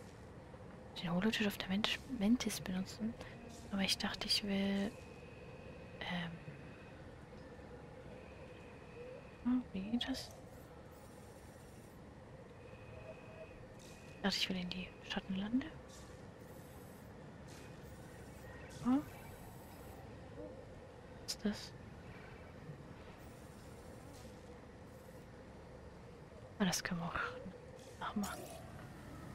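A young woman talks casually into a close microphone, in short bursts.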